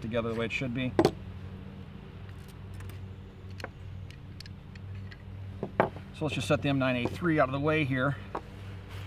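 Metal gun parts click as they are handled.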